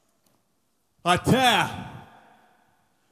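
A man sings a loud, sliding note into a microphone in a large echoing hall.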